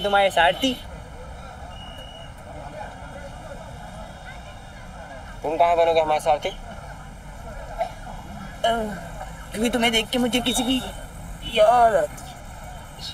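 A second young man answers calmly nearby.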